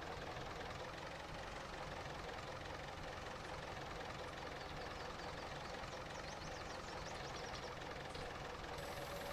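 A plough scrapes and rumbles through soil.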